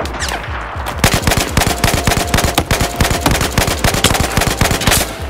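A rifle fires rapidly in quick bursts.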